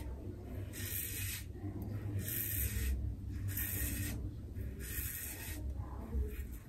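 A razor scrapes across a lathered scalp in short strokes.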